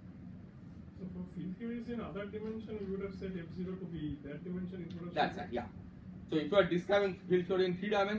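A man speaks calmly and clearly, as if lecturing.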